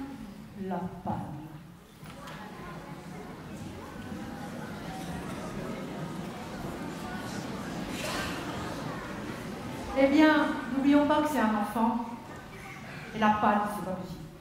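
A woman speaks with expression in a large echoing hall.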